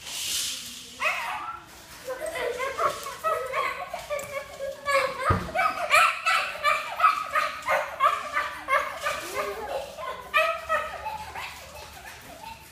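A toddler babbles and squeals playfully nearby.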